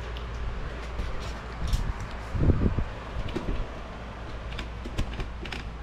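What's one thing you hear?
Stiff paper rustles and crinkles as it is handled close by.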